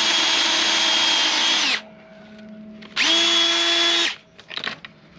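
A cordless drill whirs at high speed in short bursts.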